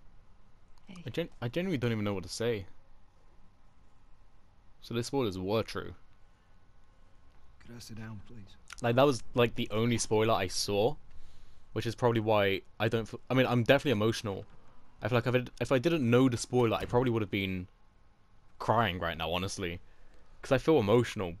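A man speaks quietly and gently.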